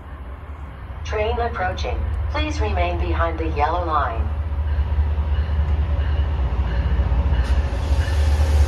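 A train rumbles closer and grows louder.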